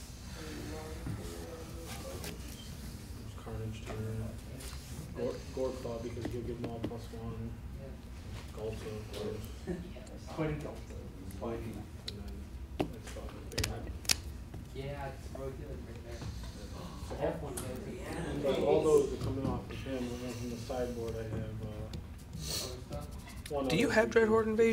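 Playing cards are shuffled and riffled by hand.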